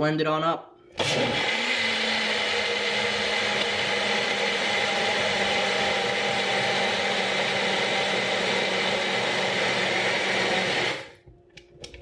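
A blender whirs loudly and steadily.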